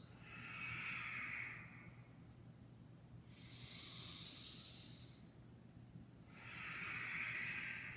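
A man breathes slowly and deeply in and out.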